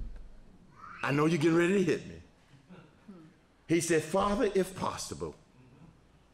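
A man speaks with animation into a microphone, close and clear.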